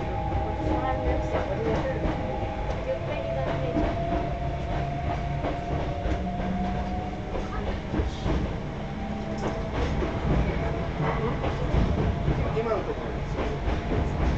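A motor whines steadily inside a train.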